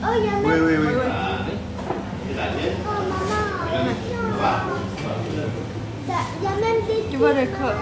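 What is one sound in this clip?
Diners chatter in the background of a busy room.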